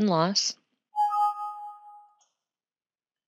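A computer alert chime sounds once and rings out.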